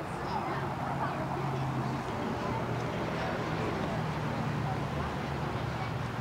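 Young children chatter at a table.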